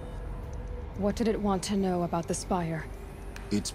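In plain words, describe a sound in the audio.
A young woman speaks calmly and quietly.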